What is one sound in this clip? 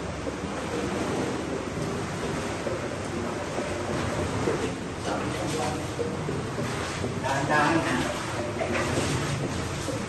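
Feet splash and slosh through shallow water, echoing off stone walls.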